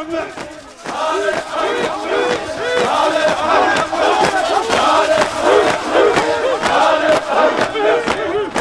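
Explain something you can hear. A crowd of men beats their chests in a steady rhythm.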